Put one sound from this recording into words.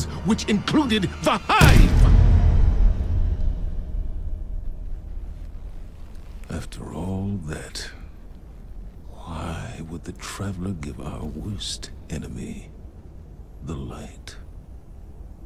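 A man speaks in a deep, grave voice.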